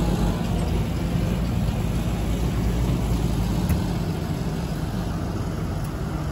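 A trailer rattles over rough ground.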